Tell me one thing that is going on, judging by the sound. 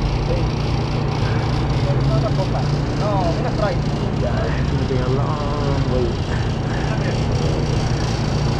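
Young women talk quietly nearby.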